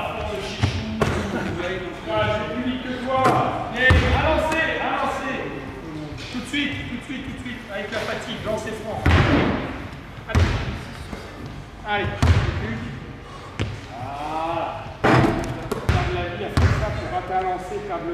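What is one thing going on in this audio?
A man speaks calmly and close by in a large echoing hall.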